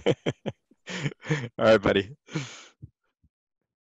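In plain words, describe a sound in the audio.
A man laughs and talks cheerfully over an online call.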